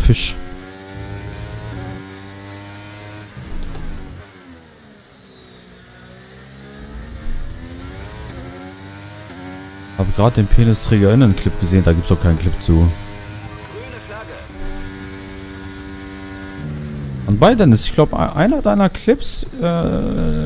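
A racing car engine whines and shifts through gears.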